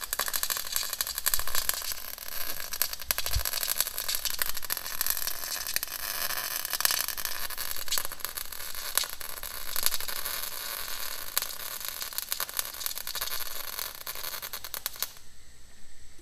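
A welder crackles and hisses steadily close by.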